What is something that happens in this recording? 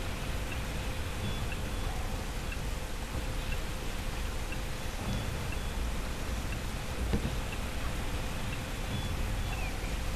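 Hooves clop steadily on a hard floor.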